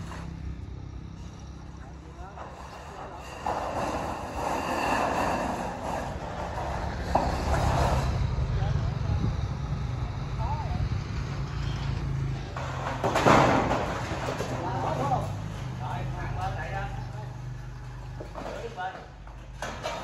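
Metal roofing sheets clatter and scrape.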